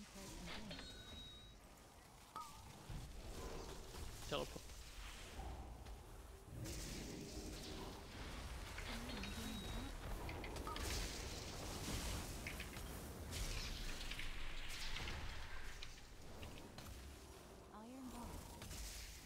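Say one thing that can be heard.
Fiery spell effects whoosh and crackle in a battle.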